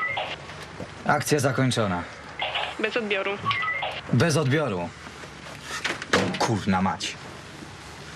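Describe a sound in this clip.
A man talks into a handheld radio, heard close by.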